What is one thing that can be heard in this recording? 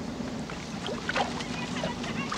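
Water splashes onto the ground.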